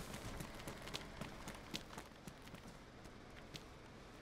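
Footsteps crunch along a gravel path.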